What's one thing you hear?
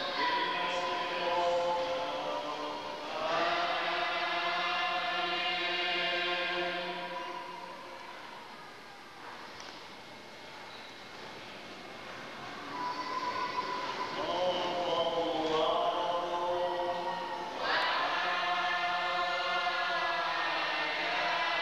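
Men's voices sing a slow chant in a large echoing hall.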